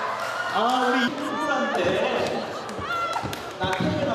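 A crowd of young people laughs.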